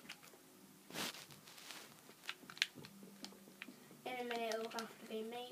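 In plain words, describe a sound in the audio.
A video game plays short clicking sound effects through a television speaker.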